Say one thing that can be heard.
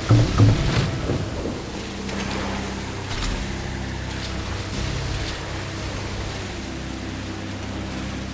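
A small boat engine hums steadily.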